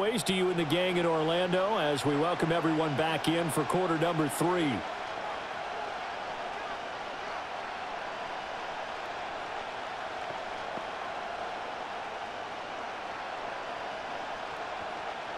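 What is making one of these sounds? A large crowd roars steadily in an open stadium.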